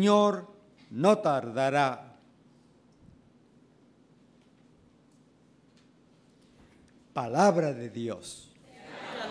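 A man sings slowly into a microphone, in short phrases with pauses.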